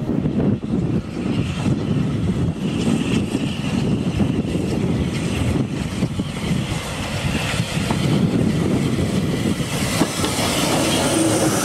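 A steam locomotive chuffs loudly as it approaches.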